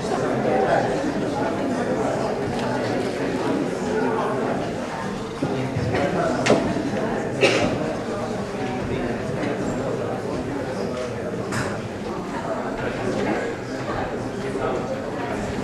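Sheets of paper rustle in people's hands.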